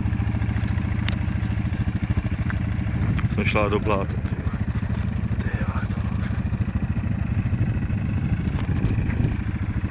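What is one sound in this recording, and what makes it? A quad bike engine chugs at low revs as it climbs a dirt mound.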